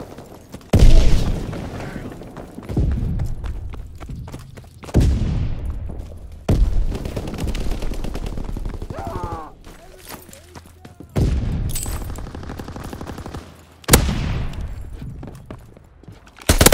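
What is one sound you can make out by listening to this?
Rifle shots fire one at a time, each booming and echoing away.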